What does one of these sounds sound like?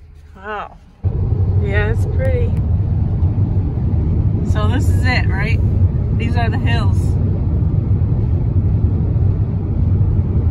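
A car drives along a highway, with loud road and wind noise rushing through an open window.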